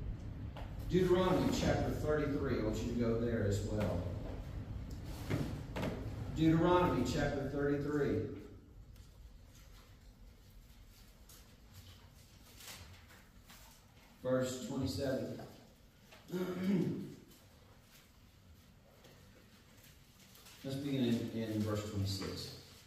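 A man speaks calmly through a microphone, his voice echoing in a large room.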